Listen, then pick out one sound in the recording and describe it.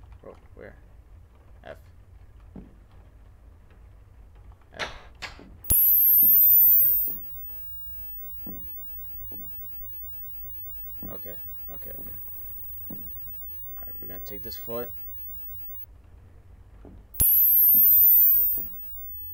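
A young man talks quietly and in short bursts into a close microphone.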